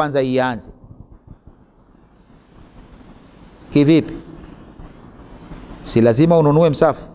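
A middle-aged man speaks calmly and slowly into a close microphone, with long pauses.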